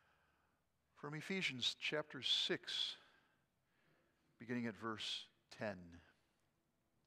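An older man speaks calmly into a microphone in an echoing hall.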